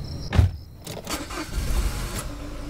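A car key turns in the ignition with a click.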